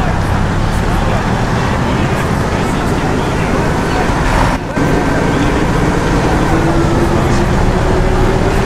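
A bus engine hums and rumbles steadily while driving.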